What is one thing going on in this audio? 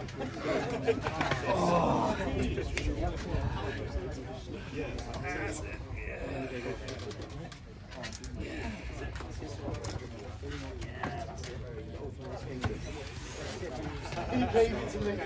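A crowd of men talk and call out nearby outdoors.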